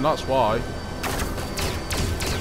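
Laser blasts fire in quick bursts.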